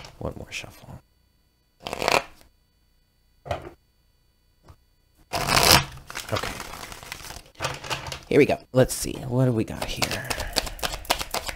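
Playing cards riffle and flap as they are shuffled.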